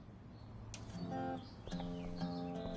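A stereo starts playing music.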